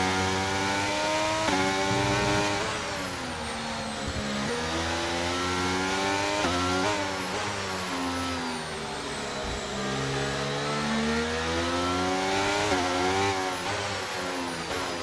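A racing car engine screams, revving up and dropping sharply with each gear change.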